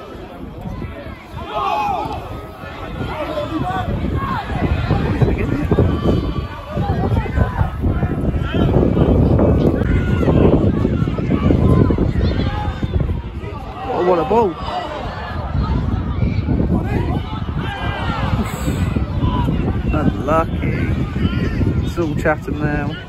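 A crowd of spectators murmurs and cheers outdoors.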